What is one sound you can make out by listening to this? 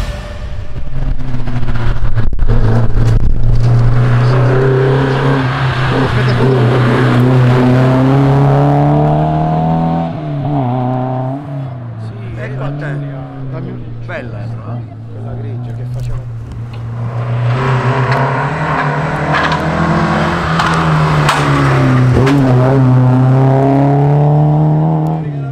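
A car engine roars and revs up and down loudly nearby.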